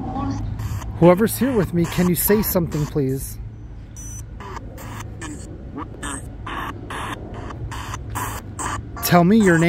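Broken fragments of voices come through a small radio speaker.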